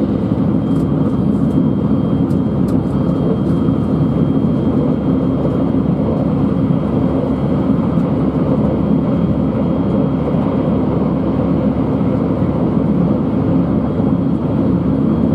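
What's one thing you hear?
A train rumbles steadily along the tracks, heard from inside the carriage.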